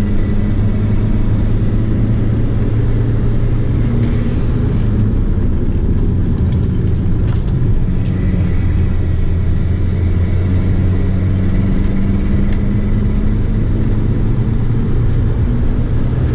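A car engine roars loudly from inside the cabin, rising and falling as the car speeds around a track.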